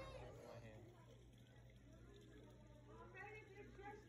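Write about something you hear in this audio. A hand swishes gently through shallow water.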